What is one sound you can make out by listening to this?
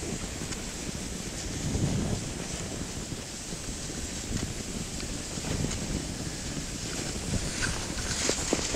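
Skis hiss and scrape over packed snow.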